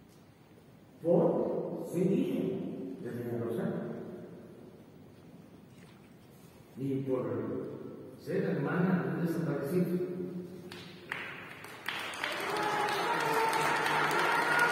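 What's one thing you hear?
A man speaks at a distance through loudspeakers in a large echoing hall.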